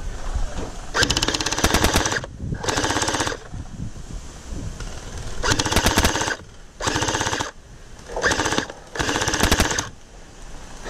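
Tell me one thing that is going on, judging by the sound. A toy gun fires rapid bursts of sharp, buzzing shots close by.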